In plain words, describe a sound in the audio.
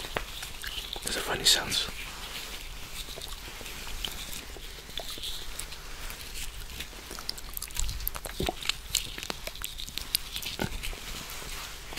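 Fingers rub and tap on a microphone, making scratchy rustles.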